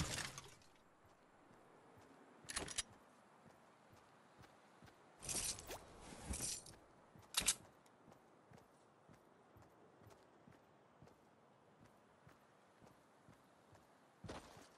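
Footsteps patter on grass as a character runs.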